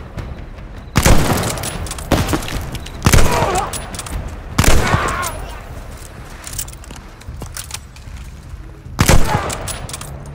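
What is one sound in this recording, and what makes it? Loud shotgun blasts boom and echo outdoors.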